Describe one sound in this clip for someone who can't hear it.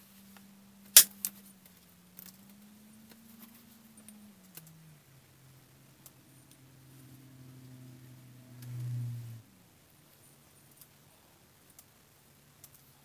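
A hand tool scrapes and taps against a piece of stone.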